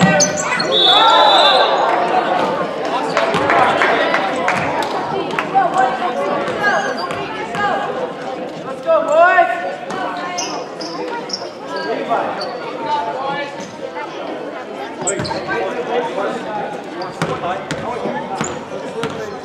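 A crowd chatters and cheers in an echoing gym.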